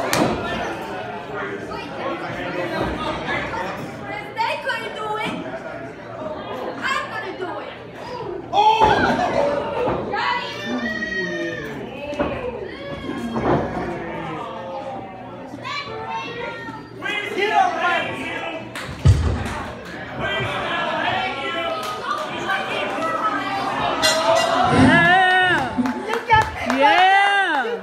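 A crowd of people talks and shouts in a large echoing hall.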